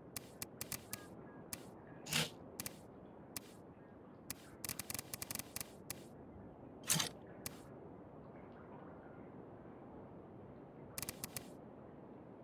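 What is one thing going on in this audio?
Short interface clicks tick as menu items are selected.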